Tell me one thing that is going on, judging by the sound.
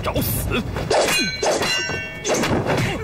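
A metal blade strikes with a ringing clang.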